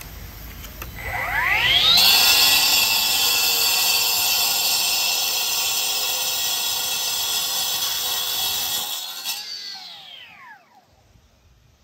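A power saw whines up to speed, screeches loudly while it cuts, and winds down.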